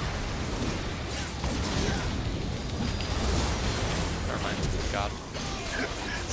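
Game spell effects whoosh and crackle in a fight.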